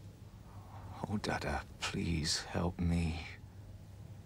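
A middle-aged man speaks in a strained, pleading voice.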